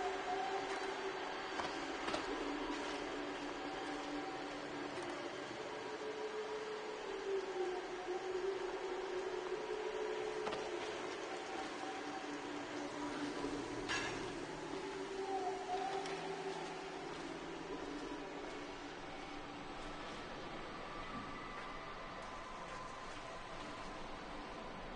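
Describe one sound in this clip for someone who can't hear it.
Footsteps tread on hard floors and metal.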